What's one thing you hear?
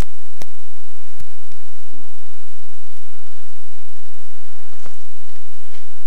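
Clothing rustles as a man shifts and rises from the ground.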